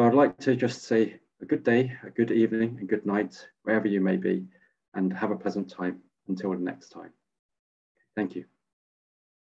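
A man speaks calmly through an online call microphone.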